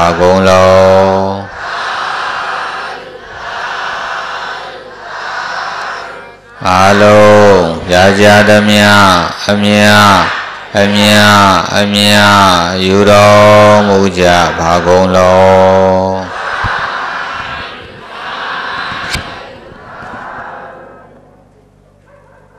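A large crowd of men and women chants prayers together in unison.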